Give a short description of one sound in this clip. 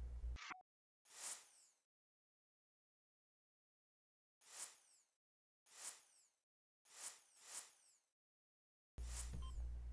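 Short soft whooshes sweep by one after another.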